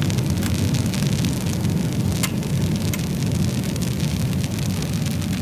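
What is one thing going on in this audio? A wood fire burns with a steady low roar.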